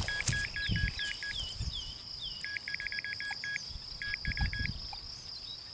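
A man digs and scrapes at the soil by hand.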